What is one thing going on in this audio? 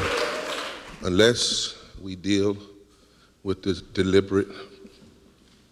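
A man preaches into a microphone with emphasis.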